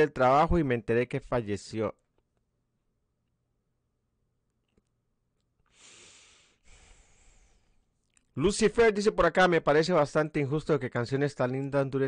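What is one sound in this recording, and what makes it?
A middle-aged man speaks with animation, close to a microphone.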